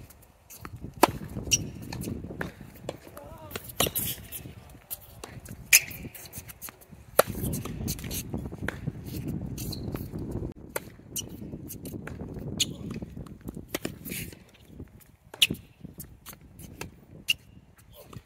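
Tennis balls are struck sharply with rackets, back and forth in a rally.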